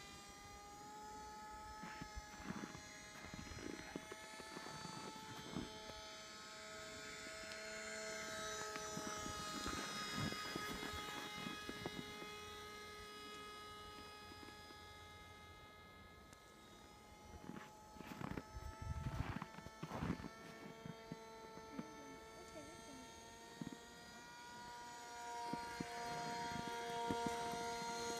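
A small propeller plane's engine buzzes steadily overhead, its pitch rising and falling slightly.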